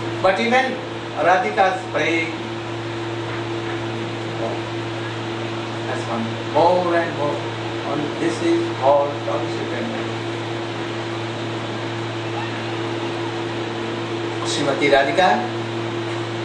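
An elderly man speaks calmly through a microphone, with long pauses.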